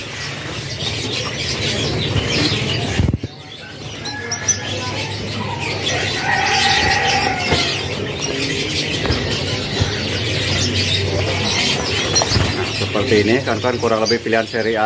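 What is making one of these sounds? Small birds flutter their wings in a cage.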